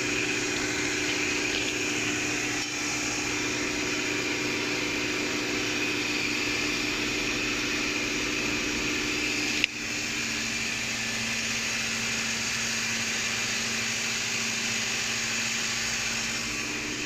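Machinery hums and whirs steadily nearby.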